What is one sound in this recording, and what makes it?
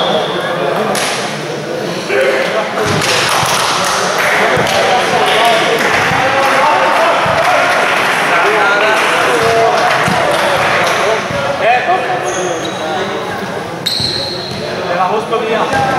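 Many voices of players and onlookers chatter and call out throughout a large echoing hall.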